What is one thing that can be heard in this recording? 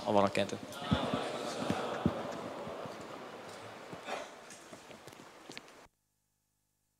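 A man speaks into a microphone, heard through a loudspeaker in an echoing hall.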